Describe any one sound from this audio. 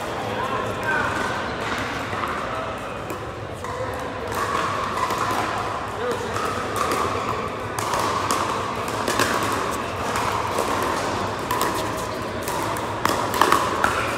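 Voices of many players murmur and call out across the hall.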